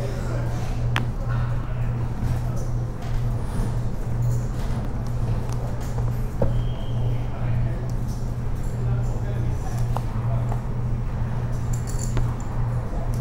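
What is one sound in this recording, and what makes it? Poker chips click against each other.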